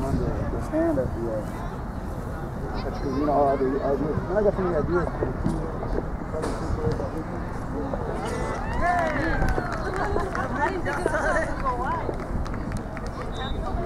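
Spectators shout and cheer from the sideline outdoors.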